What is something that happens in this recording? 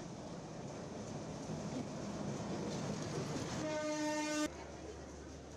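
A train rumbles past on the tracks.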